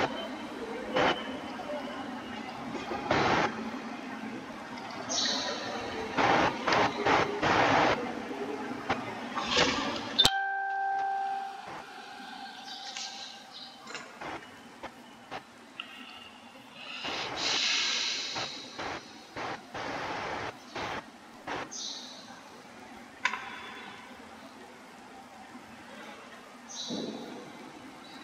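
Rain falls steadily on grass.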